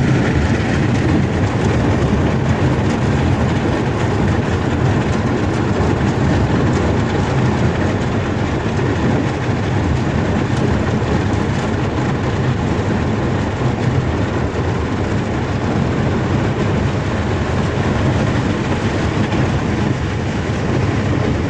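Water rushes and splashes against a boat's hull.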